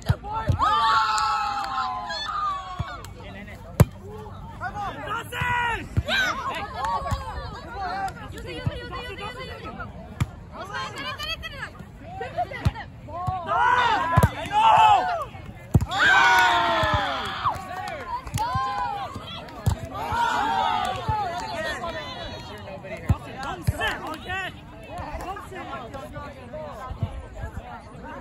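A crowd of young men and women chat and call out outdoors.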